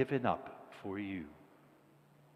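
An elderly man speaks in a chanting voice in an echoing hall.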